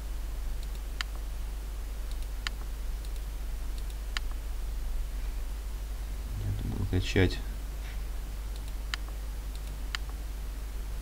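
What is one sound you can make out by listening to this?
Soft interface clicks sound now and then.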